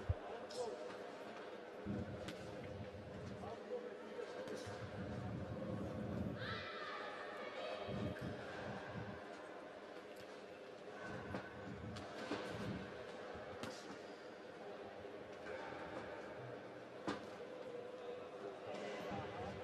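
Boxing gloves thud as punches land.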